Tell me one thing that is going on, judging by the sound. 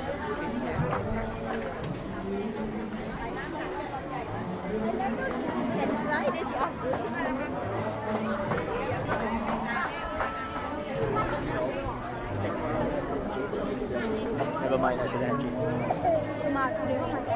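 A crowd of people chatters all around outdoors.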